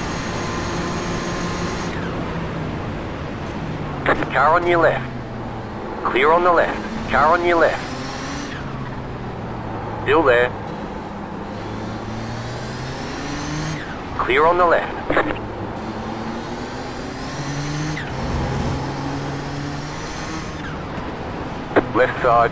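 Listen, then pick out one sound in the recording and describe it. A racing car engine drones and shifts in pitch as it accelerates and brakes.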